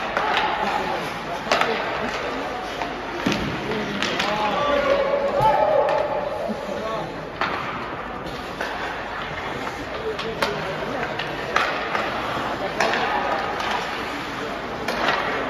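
Spectators call out and shout, echoing in a large arena.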